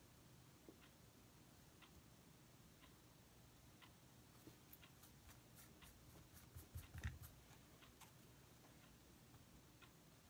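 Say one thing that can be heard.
A brush dabs and scrapes softly on card.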